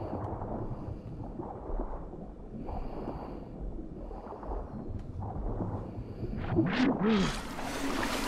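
Water swirls and gurgles around a swimmer underwater.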